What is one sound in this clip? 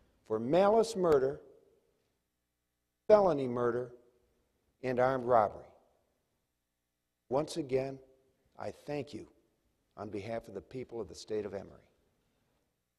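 A man speaks with animation through a microphone in a large hall, in short phrases with pauses.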